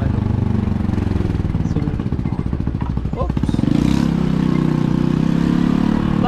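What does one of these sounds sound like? A motorcycle engine idles with a steady low putter.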